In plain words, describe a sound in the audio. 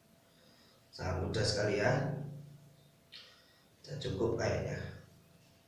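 A man speaks close by in a small echoing room.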